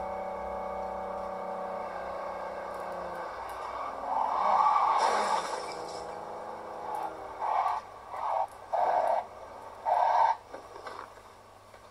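A car engine roars through small loudspeakers.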